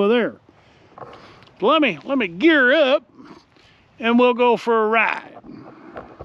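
A middle-aged man speaks with animation close by, outdoors.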